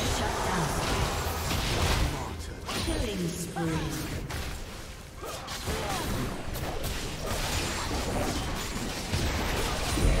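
Magic spells crackle and whoosh in a fast, noisy fight.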